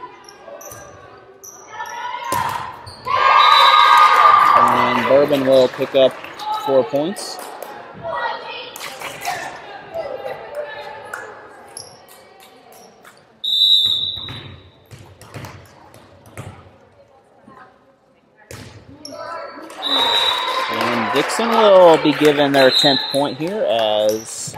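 A volleyball thuds off players' hands and arms during a rally.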